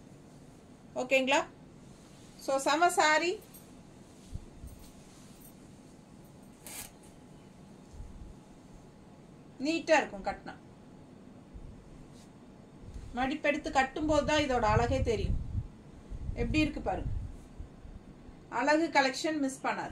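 A middle-aged woman speaks calmly, close by, in short bursts.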